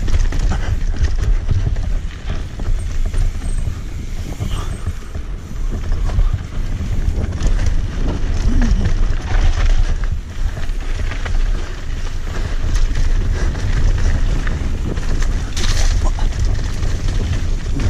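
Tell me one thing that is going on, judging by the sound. Bicycle tyres crunch and rattle over a dirt and stony trail.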